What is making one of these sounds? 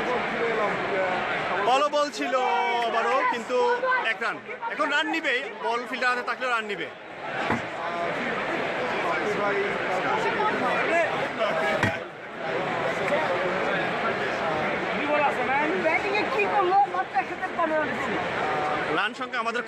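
A large crowd chatters and murmurs in an open stadium.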